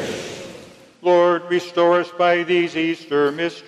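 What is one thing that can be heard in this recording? A man sings a melody loudly through a microphone.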